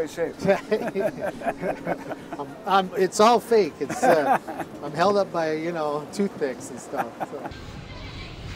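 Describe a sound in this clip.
Two men talk and laugh together nearby.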